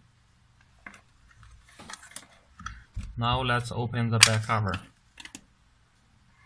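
Hands handle a small plastic case, which clicks and rattles.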